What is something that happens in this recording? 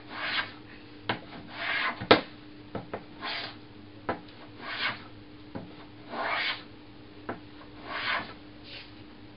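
A hand plane shaves wood in long strokes.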